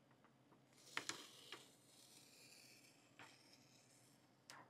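Thin plastic film crinkles as it is peeled off a surface.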